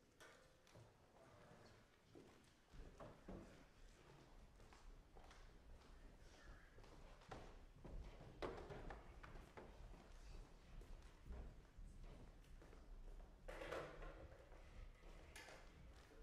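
Footsteps thud across a wooden stage.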